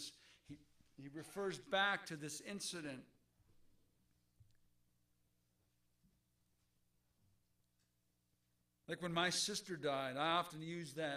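A man speaks slowly and earnestly into a microphone, heard over a loudspeaker in a room.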